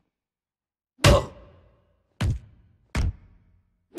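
Heavy gunshots bang loudly, one after another.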